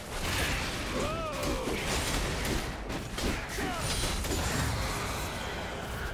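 Game sound effects of spells and hits burst during a fight.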